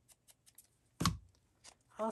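A rubber stamp thumps down onto paper.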